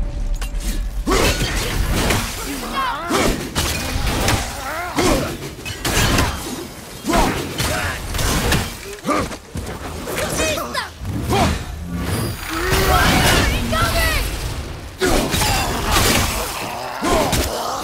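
Heavy metal weapons clash and thud in a fierce fight.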